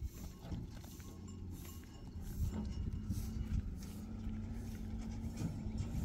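A wheelbarrow rattles as it is pushed over stony ground.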